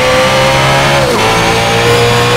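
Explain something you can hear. A car engine's pitch dips briefly as a gear shifts.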